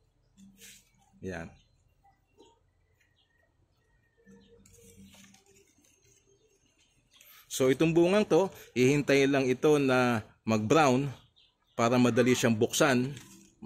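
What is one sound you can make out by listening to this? Leaves rustle softly as a hand handles them.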